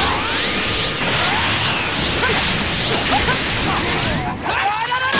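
Energy blasts crackle and roar in a video game fight.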